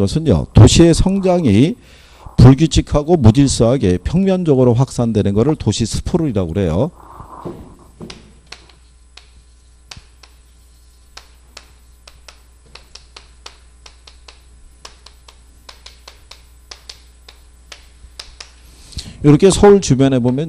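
A middle-aged man lectures with animation through a microphone.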